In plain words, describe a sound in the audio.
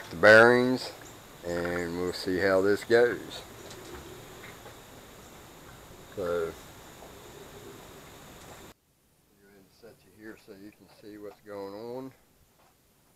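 A man talks calmly, close to a microphone.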